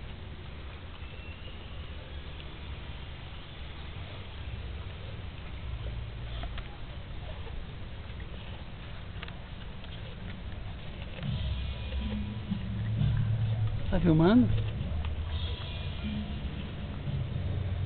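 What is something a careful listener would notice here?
A dog licks and chews watermelon wetly.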